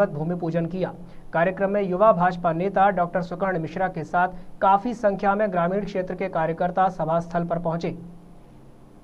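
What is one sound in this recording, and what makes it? A man speaks loudly and forcefully into a microphone over a loudspeaker system, with echo.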